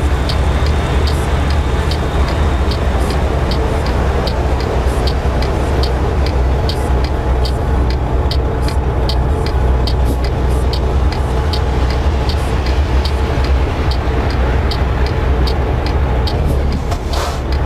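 A turn signal ticks in a steady rhythm.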